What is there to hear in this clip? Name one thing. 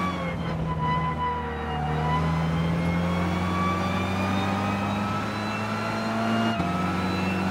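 A racing car engine revs steadily higher, then drops briefly as it shifts gear.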